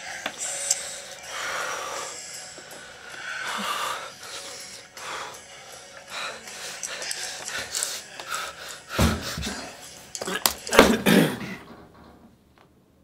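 A young man sings with feeling close by.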